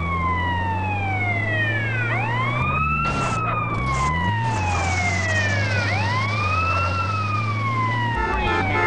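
A siren wails, rising and falling in long sweeps.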